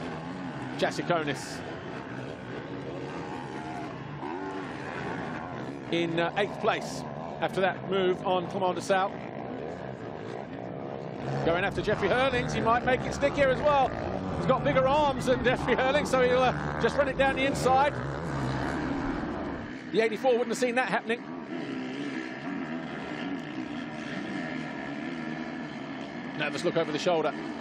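Dirt bike engines rev loudly, rising and falling in pitch.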